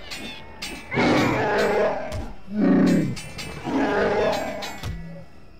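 A creature roars loudly.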